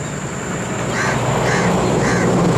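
Wading birds call with short, high cries.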